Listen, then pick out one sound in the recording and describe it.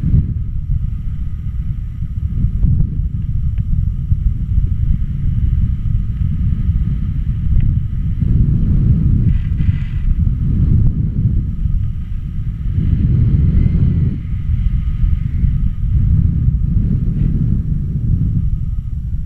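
Strong wind rushes and buffets loudly past, swelling and easing.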